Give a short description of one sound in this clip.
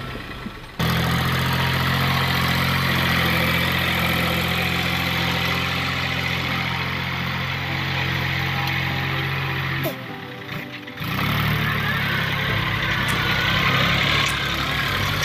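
A plough churns through heavy soil.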